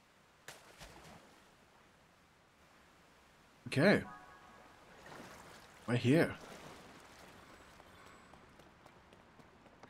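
Water laps and sloshes steadily.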